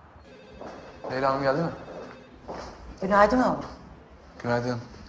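A young woman speaks briefly.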